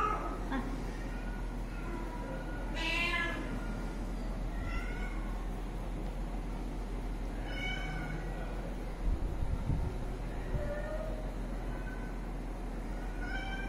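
A cat meows close by.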